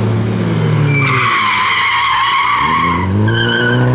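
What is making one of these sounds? Tyres squeal on asphalt as a car slides through a bend.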